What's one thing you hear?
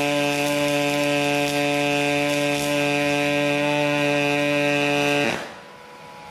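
A welding arc buzzes steadily.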